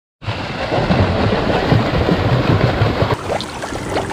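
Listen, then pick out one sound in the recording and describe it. Swimmers kick and splash loudly in water.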